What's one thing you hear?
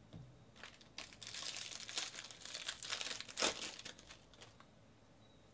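A plastic wrapper crinkles as it is torn open.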